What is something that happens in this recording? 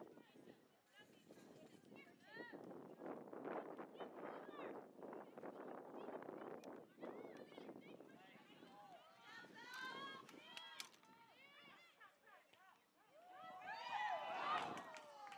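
Young women shout and call out to each other across an open outdoor field.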